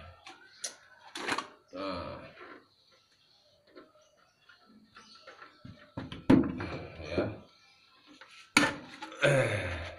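A plastic water jug thumps and crinkles as it is handled.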